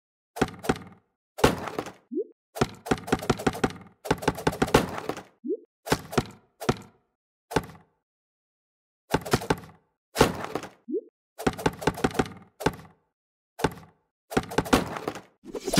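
Knives thud sharply into wood in quick bursts.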